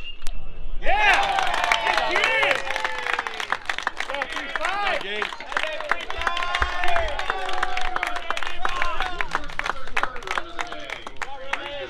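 A crowd of people cheers and shouts loudly outdoors.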